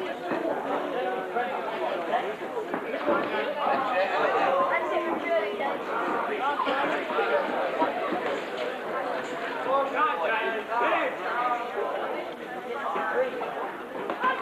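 A crowd of men and women chatters and shouts loudly in a large hall.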